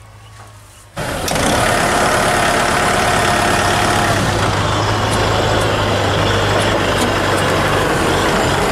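A disc plough cuts through soil.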